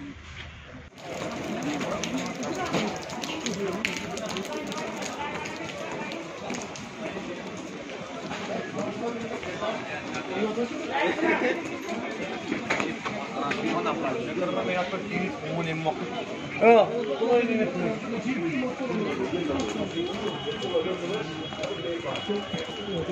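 A crowd of people chatters and murmurs in a busy street outdoors.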